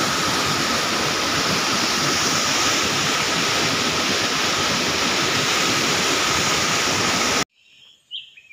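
A stream rushes loudly over rocks.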